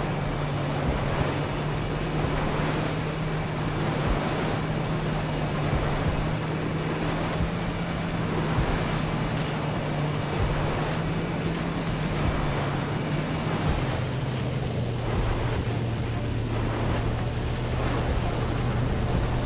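Water rushes and splashes under a speeding boat.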